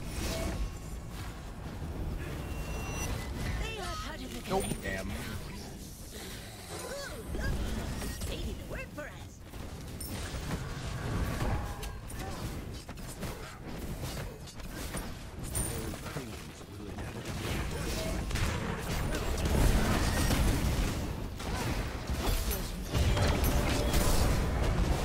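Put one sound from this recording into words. Magic blasts and explosions crackle and boom in quick bursts.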